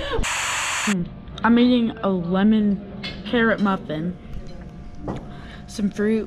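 A young woman talks close up.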